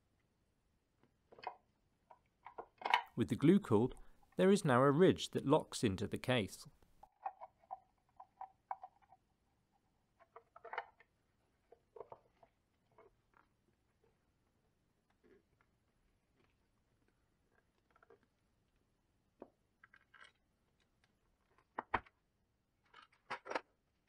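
A plastic box clicks and knocks lightly as hands handle it.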